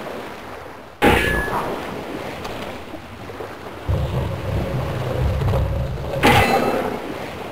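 A sword strikes a creature with a thud.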